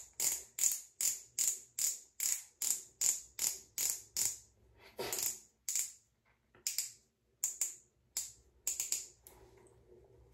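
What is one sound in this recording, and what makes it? A small cosmetic pen clicks rapidly and repeatedly.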